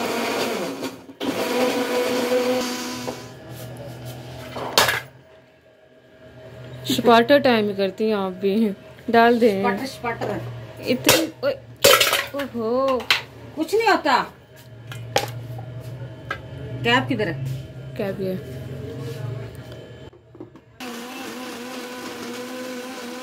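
A blender motor whirs loudly.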